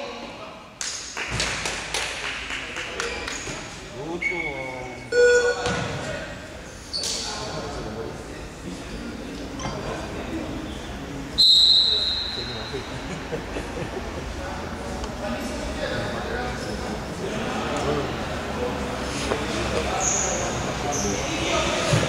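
Young men shout and call out across an echoing gym.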